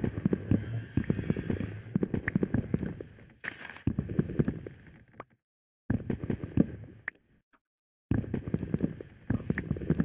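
Leafy blocks crunch and rustle in quick, repeated bursts as they are broken.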